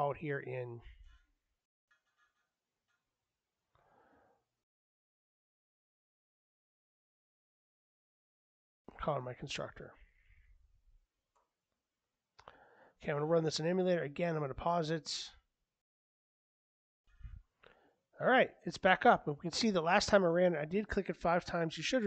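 A man talks calmly into a microphone, in short bursts with pauses.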